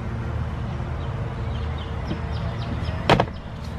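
A heavy battery is set down on a plastic case with a dull knock.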